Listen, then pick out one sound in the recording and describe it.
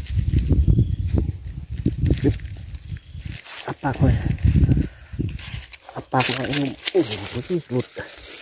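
A snakehead fish thrashes in dry leaves and grass.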